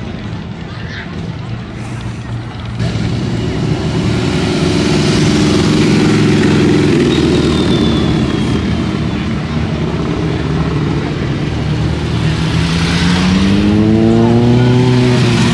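Motorcycle engines rumble loudly close by.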